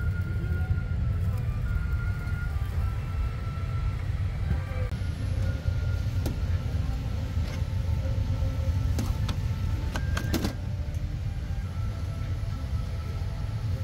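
A steady low engine rumble fills an aircraft cabin.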